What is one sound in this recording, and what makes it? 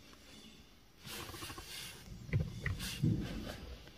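Water sprays and drums against a car's windscreen.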